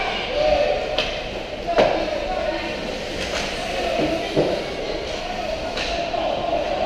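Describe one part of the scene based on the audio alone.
Hockey sticks click and clack against a puck.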